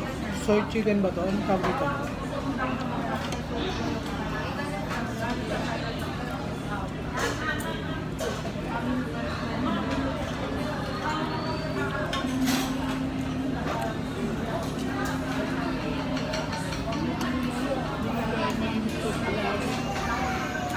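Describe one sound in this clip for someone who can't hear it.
Diners chatter and talk in the background of a busy room.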